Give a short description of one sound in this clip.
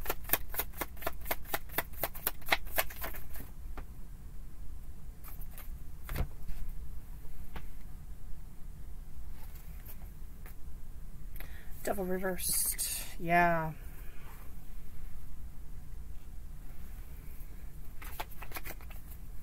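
Playing cards riffle and flick quickly as they are shuffled.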